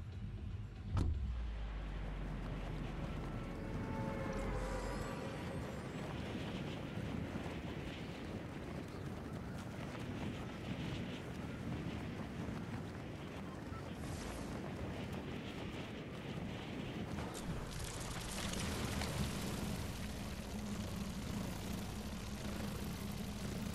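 Wind rushes steadily during a fast fall through the air.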